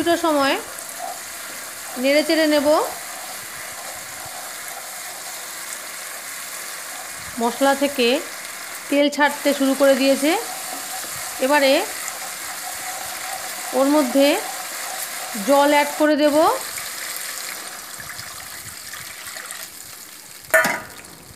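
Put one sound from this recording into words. Sauce sizzles and bubbles in a hot pan.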